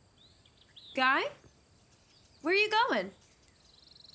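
A young woman speaks sharply from close by.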